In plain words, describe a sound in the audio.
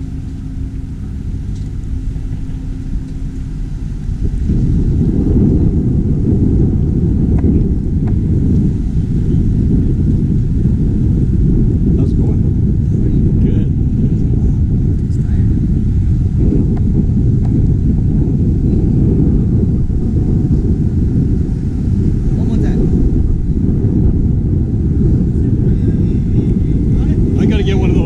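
Wind rumbles loudly against the microphone outdoors.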